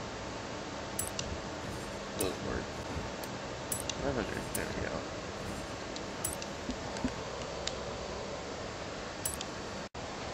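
Soft electronic menu clicks tick now and then.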